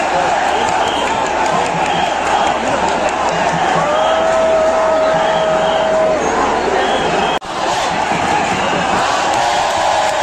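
A huge crowd roars and cheers loudly all around.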